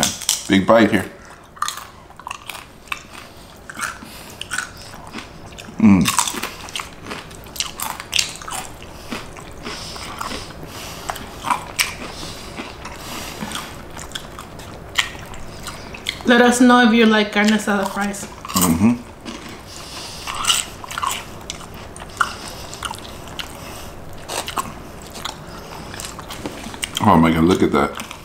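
People chew and smack their lips close to the microphone.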